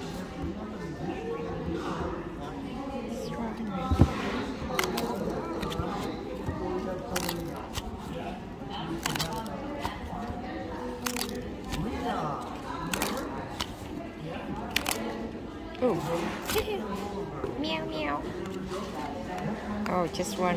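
Paper tickets rustle and snap as tabs are pulled open.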